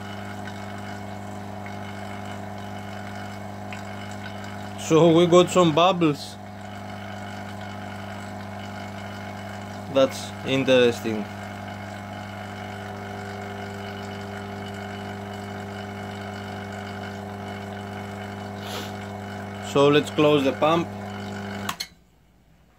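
A vacuum pump hums steadily.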